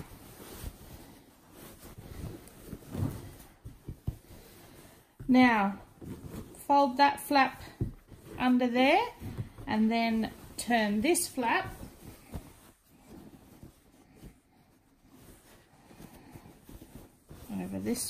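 Cloth rustles softly as hands pull a pillowcase over a pillow.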